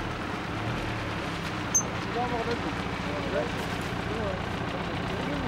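An engine idles with a low steady rumble.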